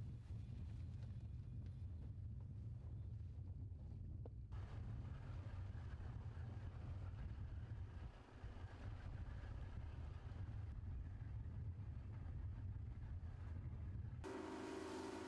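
Wind blows hard and rumbles across open water.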